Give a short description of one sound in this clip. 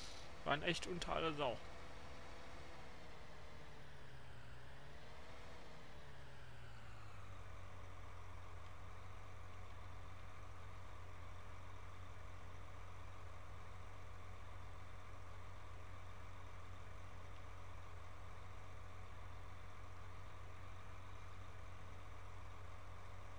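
A tractor engine hums steadily, its pitch falling as it slows to idle.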